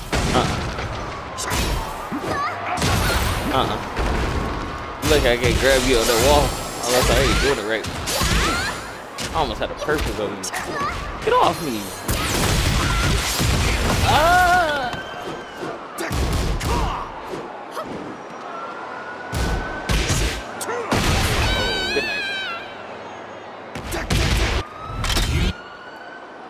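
Punches and kicks land with sharp, heavy hits in quick bursts.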